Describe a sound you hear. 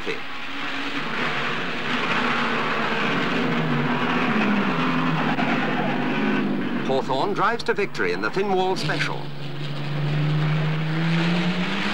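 A racing car engine roars past at speed.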